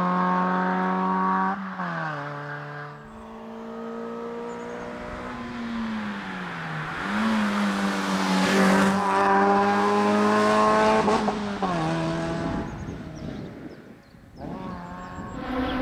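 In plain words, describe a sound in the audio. A rally car engine revs hard, rising and falling as the driver shifts gears.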